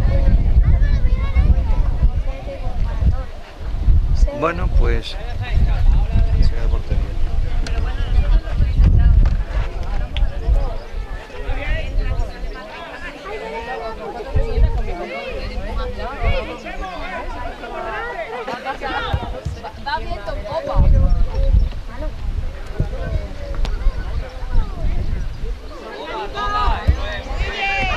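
Young players shout to each other across the field.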